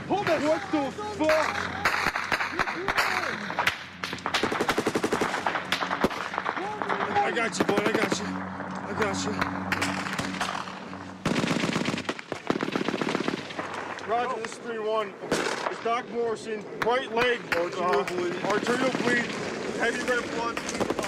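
Men shout urgently close by.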